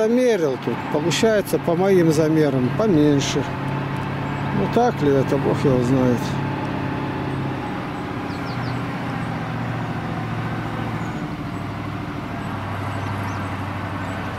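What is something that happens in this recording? A truck engine rumbles steadily as the truck drives away.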